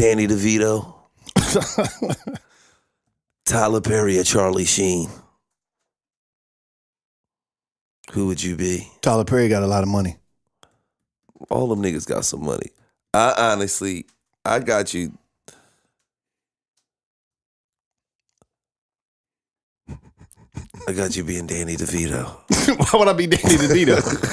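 A young man speaks with animation into a close microphone, in short bursts with pauses.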